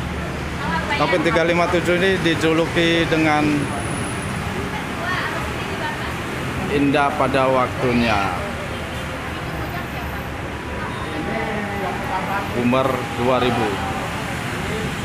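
A man speaks nearby in short bursts.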